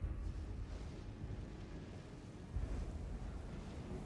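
Heavy footsteps thud on wooden boards.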